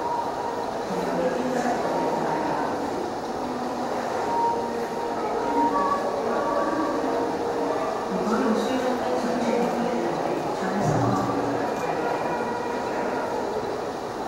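Young men and women chat quietly in an echoing room.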